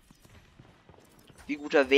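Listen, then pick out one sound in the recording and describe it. A gun fires in quick shots.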